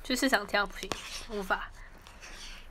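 A young woman speaks briefly, close by.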